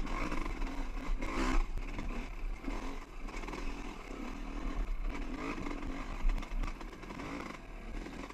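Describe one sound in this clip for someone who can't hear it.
Tyres crunch and scrape over rock and gravel.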